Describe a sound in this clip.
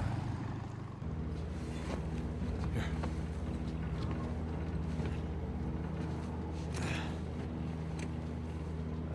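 A plane's engines drone steadily from inside the cabin.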